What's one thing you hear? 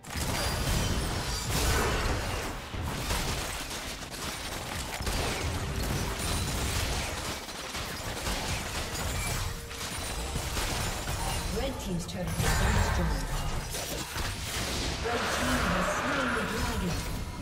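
Magic blasts whoosh and clash in a video game battle.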